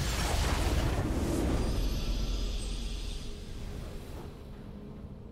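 A bright swelling whoosh rings out and slowly fades away.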